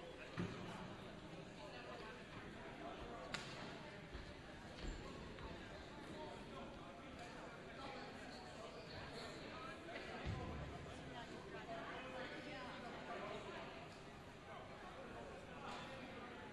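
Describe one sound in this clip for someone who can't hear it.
Several people chat far off in a large echoing hall.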